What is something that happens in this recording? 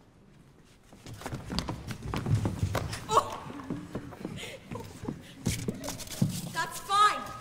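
Footsteps thud on a wooden stage floor.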